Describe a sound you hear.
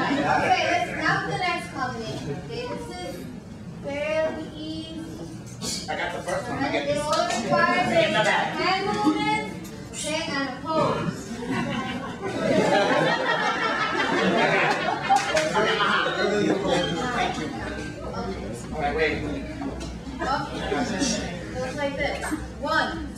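A young woman talks with animation.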